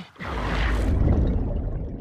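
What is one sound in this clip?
A swimmer splashes and bubbles underwater.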